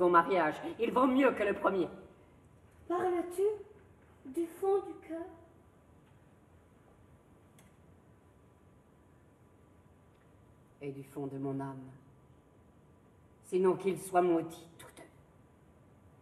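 A middle-aged woman speaks slowly and with feeling.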